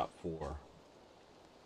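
A man speaks briefly and casually into a microphone.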